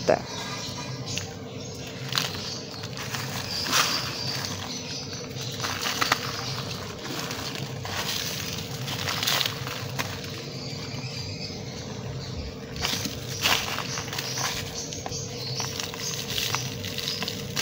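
Dry clumps of earth crumble and crunch in a hand.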